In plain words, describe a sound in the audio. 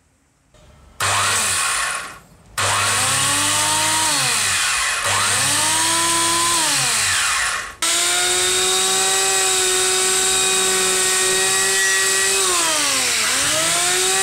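An electric planer motor whirs loudly, revving up and winding down several times.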